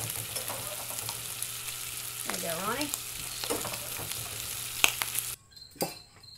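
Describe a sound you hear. Bacon sizzles loudly in a frying pan.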